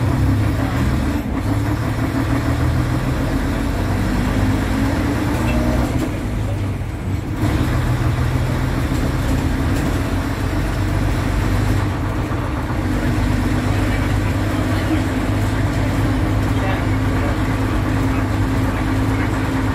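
A bus body rattles and shakes while moving.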